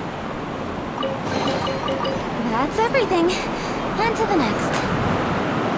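A treasure chest opens with a bright, rising chime.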